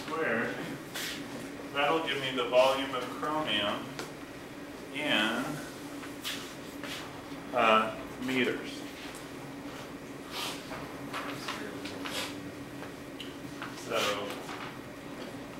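A man speaks in a lecturing tone in an echoing room.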